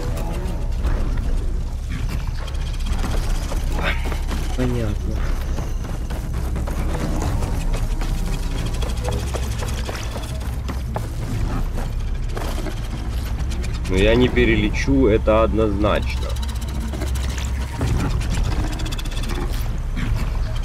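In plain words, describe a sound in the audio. A man talks with animation into a nearby microphone.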